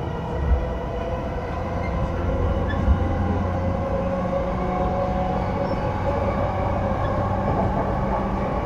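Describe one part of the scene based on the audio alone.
An electric train's motor hums and rumbles steadily.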